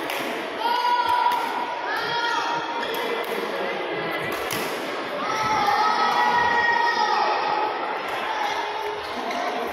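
Badminton rackets smack shuttlecocks in a large echoing hall.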